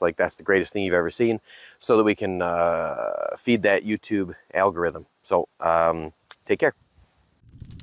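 A middle-aged man with a deep voice speaks calmly, close by.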